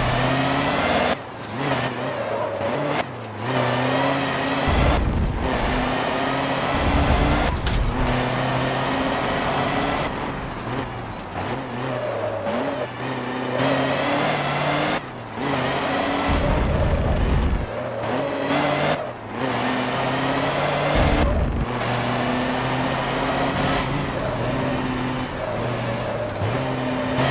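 A truck engine roars loudly, revving up and dropping back as gears change.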